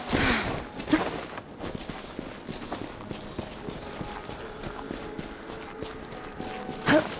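Footsteps crunch on dirt and rock as a game character runs.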